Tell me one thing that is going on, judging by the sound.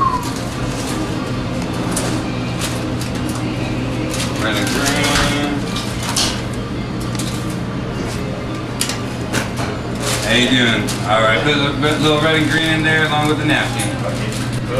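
A paper bag crinkles and rustles as it is handled.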